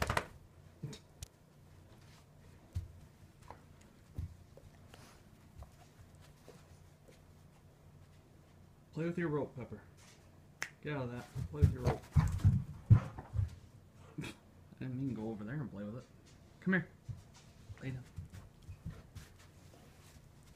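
A dog pads softly across a carpet.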